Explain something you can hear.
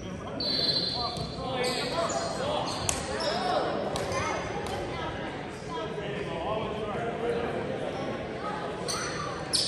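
Young people talk and call out in a large echoing gym.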